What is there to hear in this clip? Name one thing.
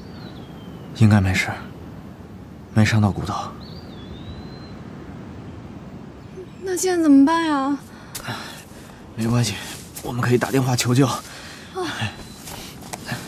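A young man speaks urgently nearby.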